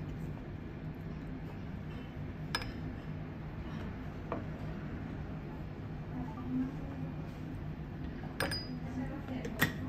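Tea pours in a thin stream into a cup.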